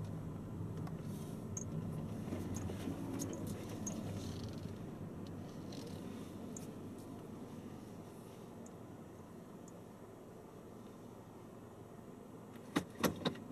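A car engine hums low inside the car as it rolls slowly and comes to a stop.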